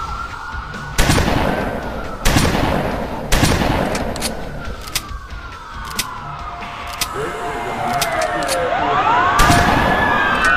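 A rifle fires single loud, echoing shots.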